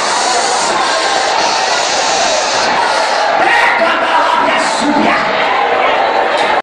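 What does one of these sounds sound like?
A crowd of people shouts and prays loudly all around.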